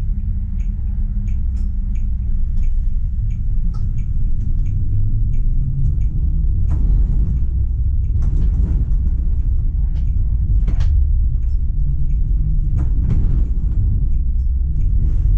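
Tram wheels click and squeal over rail joints and switches.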